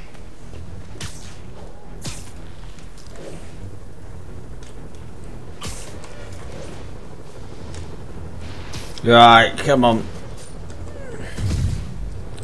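Quick whooshes sweep past again and again.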